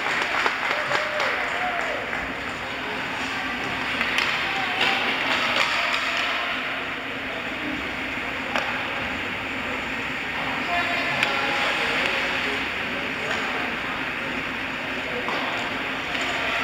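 Ice skates scrape and swish across ice in a large echoing rink.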